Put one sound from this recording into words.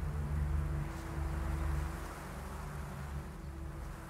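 Footsteps run across gravel.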